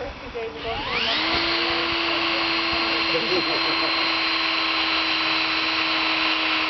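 A cordless drill whirs steadily.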